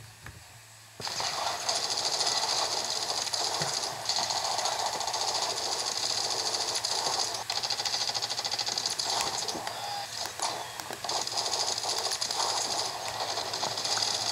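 Video game gunfire and effects play from a small speaker.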